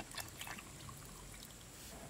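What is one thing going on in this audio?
Water pours into a glass jar.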